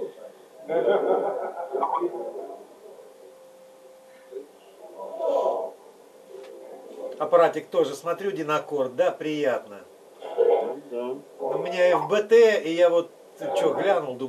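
A young man speaks into a microphone over loudspeakers in an echoing hall.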